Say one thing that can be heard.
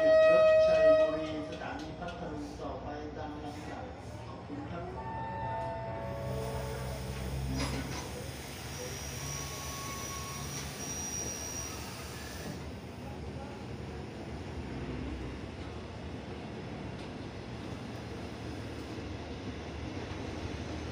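Passenger train carriages roll slowly past on the rails.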